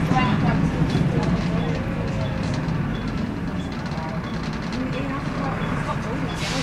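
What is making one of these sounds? A Volvo B7L diesel city bus's engine drones, heard from inside the cabin.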